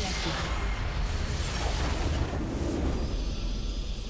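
Magic spell effects crackle and burst loudly.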